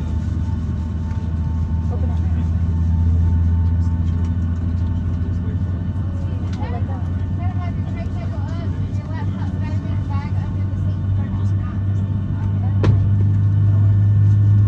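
Airplane wheels rumble over the taxiway.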